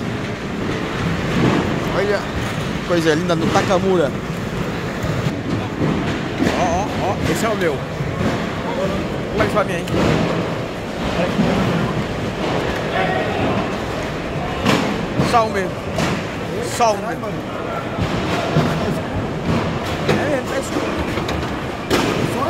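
A crowd of men and women talk loudly all around.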